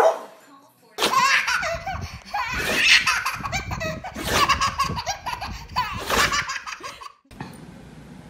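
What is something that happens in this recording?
A baby girl laughs loudly and happily nearby.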